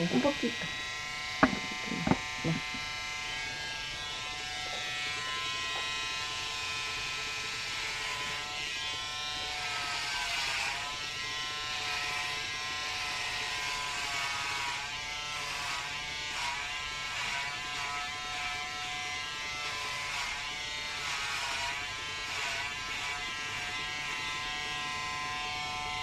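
Electric hair clippers buzz.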